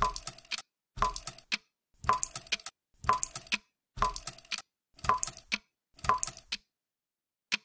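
Water drips steadily, once a second.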